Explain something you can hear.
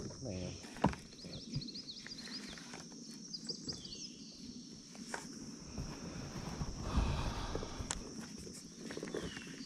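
A fishing reel clicks as it is handled.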